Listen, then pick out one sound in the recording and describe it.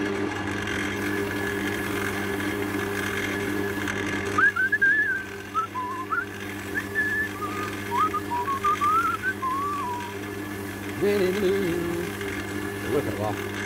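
A cloth rubs and squeaks against spinning wood.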